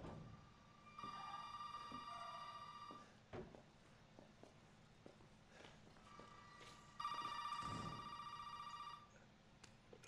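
A telephone rings loudly.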